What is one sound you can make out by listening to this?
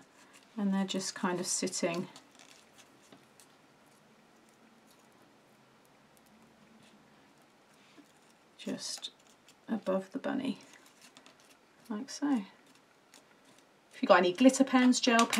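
Paper rustles and crinkles softly as hands handle it.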